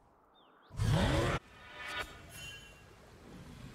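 Game spell effects whoosh and burst.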